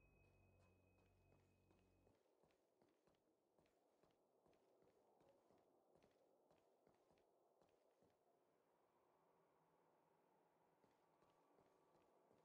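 Light footsteps patter quickly across a hard floor.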